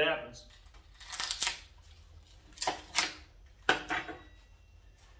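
A metal blade knocks and scrapes against wood.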